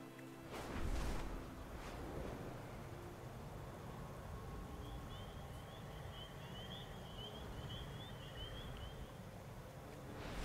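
Wind rushes steadily past a flying creature.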